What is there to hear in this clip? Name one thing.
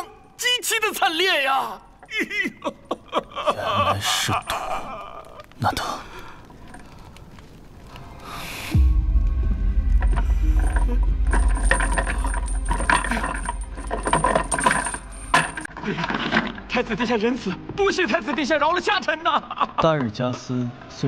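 A man laughs wildly and talks mockingly.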